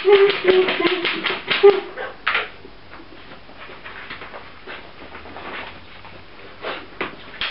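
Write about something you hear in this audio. Puppies rummage and rattle things in a plastic basket.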